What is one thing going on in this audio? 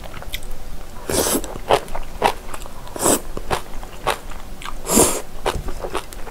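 A young woman slurps noodles loudly, close to the microphone.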